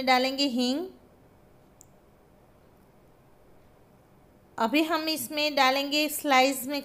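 A woman speaks calmly and closely, as if narrating.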